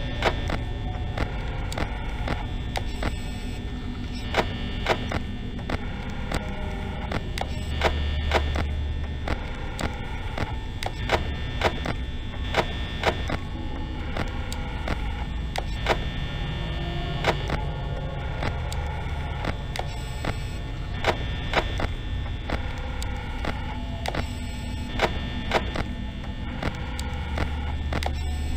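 Sharp clicks sound again and again.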